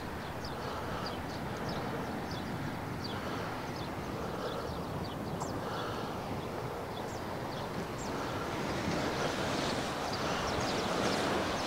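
Wind blows steadily across open ground outdoors.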